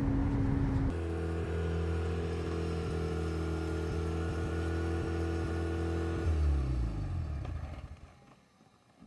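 A car engine idles outside, then winds down and stops.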